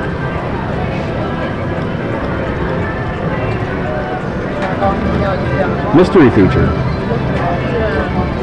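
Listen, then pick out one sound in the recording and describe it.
A slot machine plays jingling electronic music and reel sounds.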